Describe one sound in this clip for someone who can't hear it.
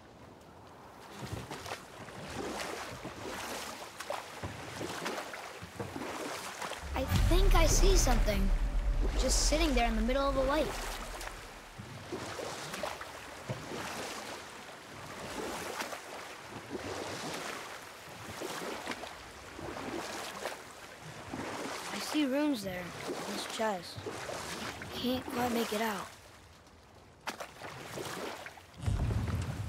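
Waves lap gently against a wooden boat.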